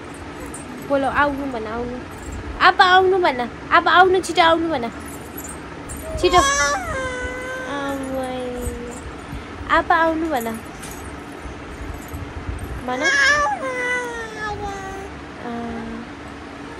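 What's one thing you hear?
A young woman speaks softly and playfully close by.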